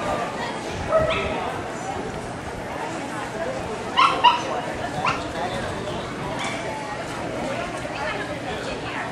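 A woman shouts short commands to a dog.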